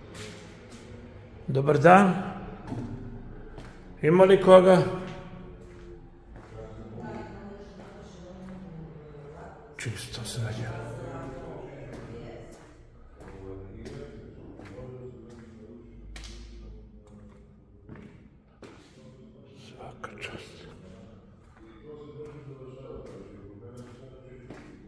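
Footsteps walk slowly on a hard floor.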